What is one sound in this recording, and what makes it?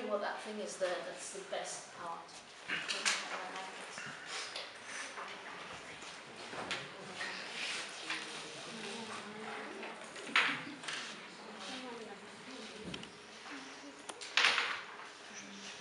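Paper rustles as a woman handles sheets.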